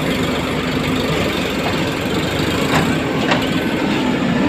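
Soil thuds and scrapes as a digger bucket dumps it into a trailer.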